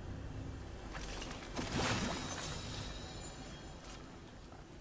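A treasure chest opens with a shimmering chime.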